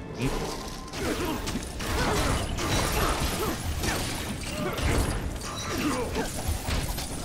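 Toy bricks clatter and scatter as things break apart.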